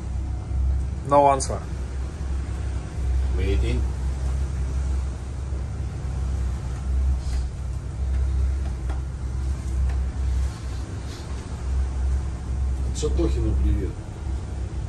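A middle-aged man speaks a few short words nearby.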